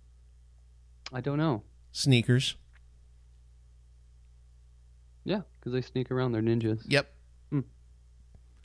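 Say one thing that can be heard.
A second man talks into a close microphone.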